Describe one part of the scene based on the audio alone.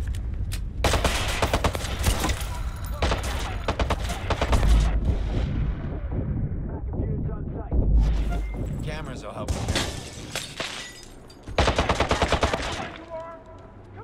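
Pistol shots ring out in quick bursts.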